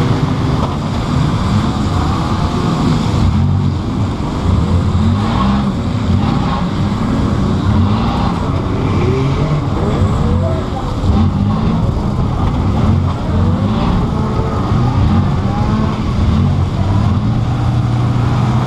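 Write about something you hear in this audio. A car body rattles and bangs over rough ground.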